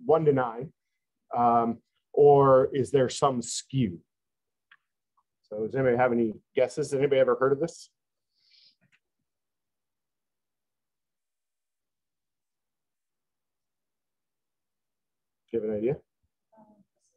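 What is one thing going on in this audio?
A man speaks calmly into a close microphone, in short bursts with long pauses.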